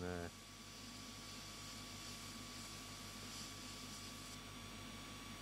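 An airbrush hisses softly as it sprays.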